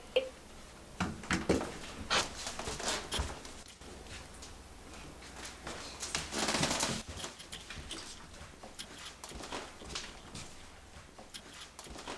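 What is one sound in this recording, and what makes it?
Footsteps tread across a floor indoors.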